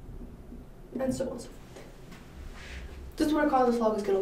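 A young woman speaks up close.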